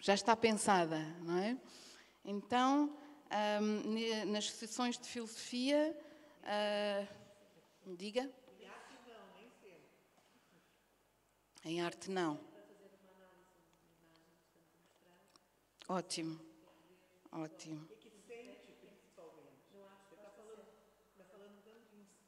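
A woman speaks calmly into a microphone in a large echoing room.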